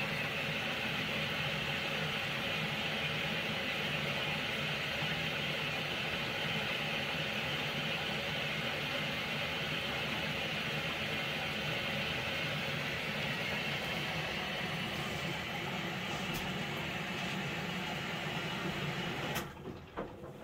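A front-loading washing machine hums as its drum tumbles laundry.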